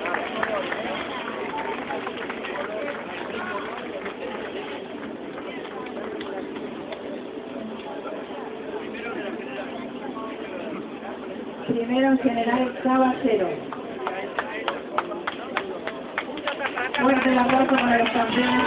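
A crowd of people talk and murmur outdoors.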